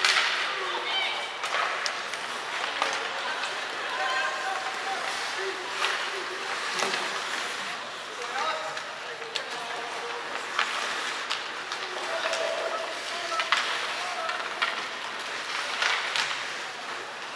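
Hockey sticks clack sharply against the puck and ice.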